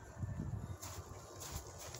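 Footsteps thud softly on grass.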